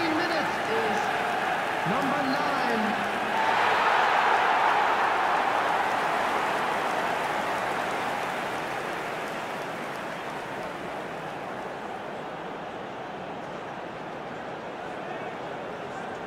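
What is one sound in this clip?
A large stadium crowd roars, swelling loudly and then slowly fading.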